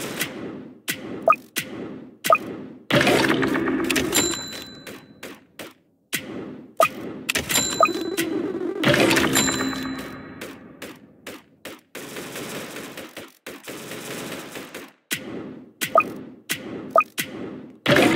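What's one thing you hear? Gunshots fire in quick, sharp bursts.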